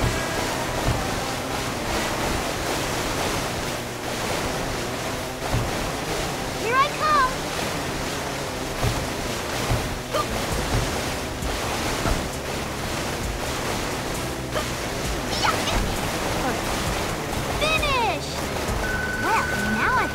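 Water sprays and splashes against a jet ski.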